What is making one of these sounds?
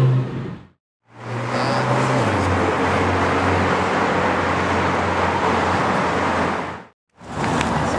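A sports car engine drones steadily as the car drives past.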